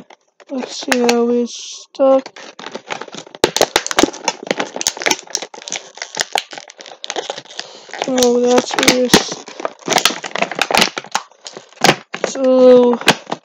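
A plastic package crinkles and rustles in hands.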